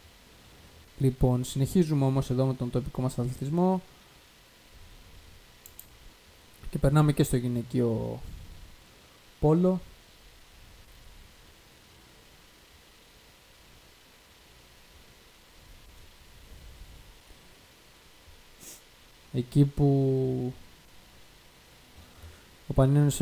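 A young man speaks into a close microphone in short bursts.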